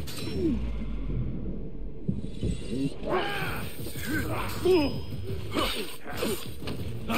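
Metal blades clash and ring in a fight.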